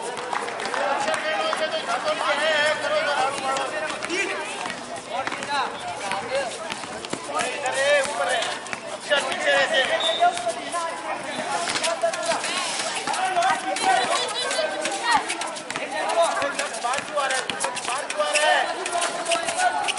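Children shout and call out excitedly nearby, outdoors.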